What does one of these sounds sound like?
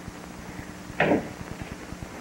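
A door closes with a knock.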